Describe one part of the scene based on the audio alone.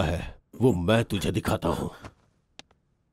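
A man speaks sharply nearby.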